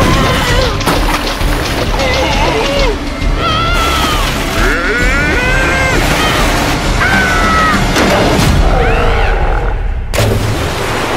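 Rushing water roars and splashes.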